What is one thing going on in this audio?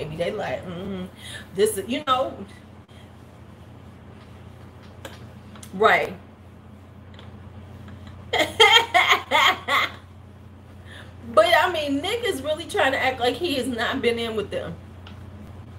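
A middle-aged woman talks with animation close to a microphone, pausing often.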